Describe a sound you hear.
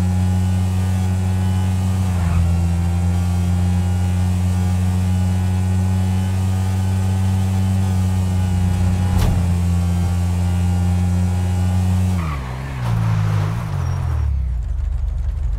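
A motorcycle engine hums steadily at speed, then slows down.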